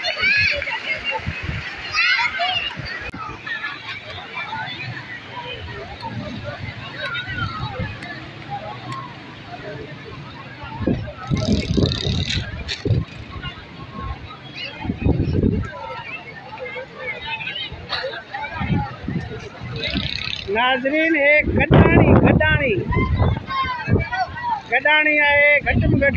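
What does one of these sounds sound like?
A crowd chatters and calls out all around, outdoors.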